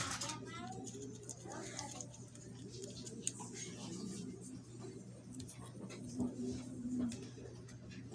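A soldering iron tip scrapes softly against metal pins.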